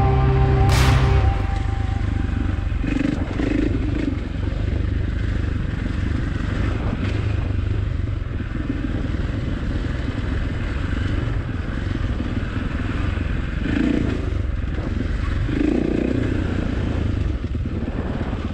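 Tyres crunch and rattle over loose dirt and stones.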